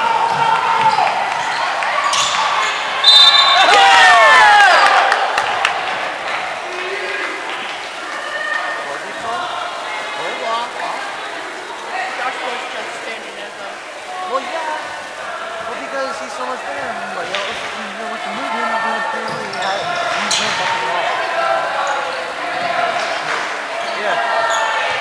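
A crowd of spectators cheers and calls out in an echoing gym.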